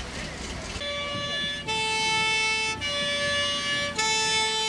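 A fire engine's two-tone siren blares loudly.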